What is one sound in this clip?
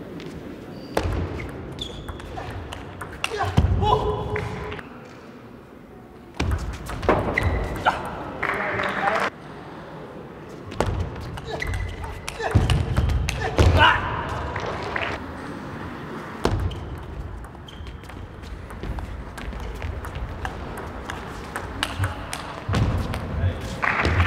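A table tennis ball clicks sharply against paddles and the table in a quick rally.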